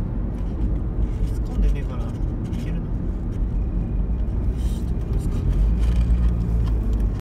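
Tyres roll and rumble on the road.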